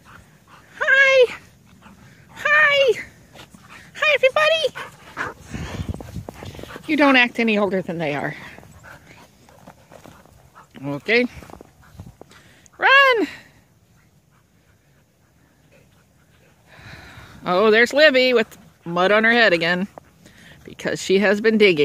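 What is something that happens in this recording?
Dogs bark and yelp excitedly outdoors.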